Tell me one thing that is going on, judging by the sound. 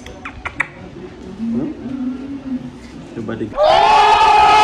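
A young boy laughs close by.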